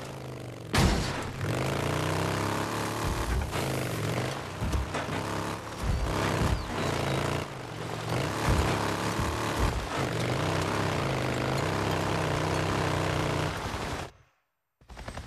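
A motorcycle engine rumbles and revs.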